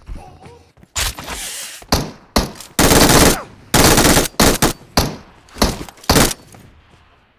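Gunfire bursts loudly in short, heavy blasts.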